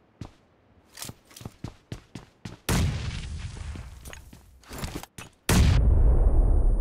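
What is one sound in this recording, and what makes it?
Footsteps thud on wooden floorboards and stairs.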